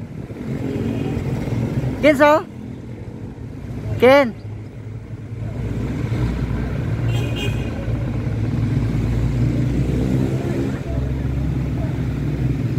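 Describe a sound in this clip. Traffic rumbles steadily in the distance.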